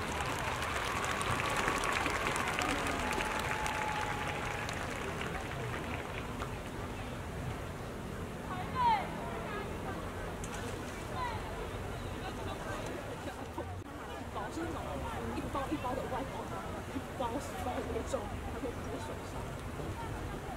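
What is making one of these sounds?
A large crowd murmurs and chatters in a wide open stadium.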